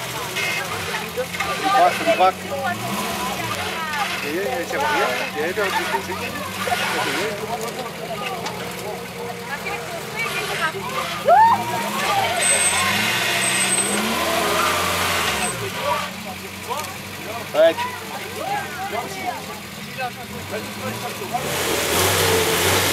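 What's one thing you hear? An off-road engine rumbles and revs as a vehicle climbs a steep slope.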